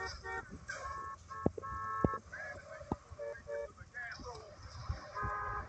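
Car horns honk in a traffic jam.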